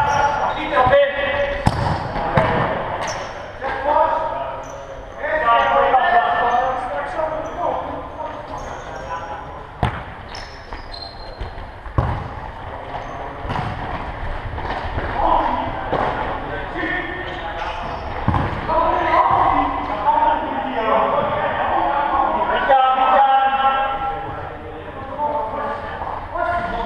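Players' shoes squeak on a hard court in a large echoing hall.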